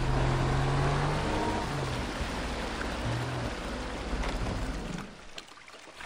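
A watercraft engine hums loudly, then cuts out.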